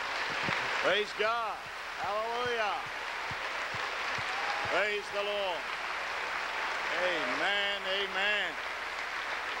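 A man shouts with fervour into a microphone in a large echoing hall.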